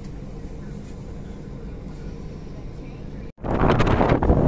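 A bus engine hums steadily from inside the bus.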